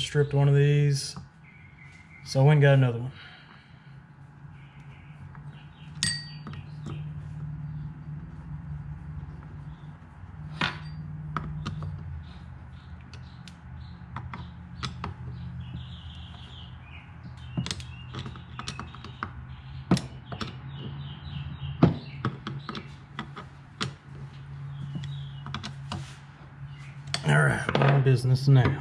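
A screwdriver scrapes and clicks against a metal part.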